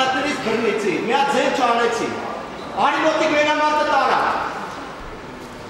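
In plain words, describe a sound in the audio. A young man shouts in a large echoing hall.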